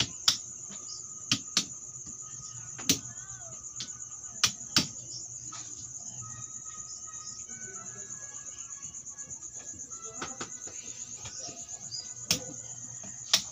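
Plastic game pieces click and tap on a wooden board.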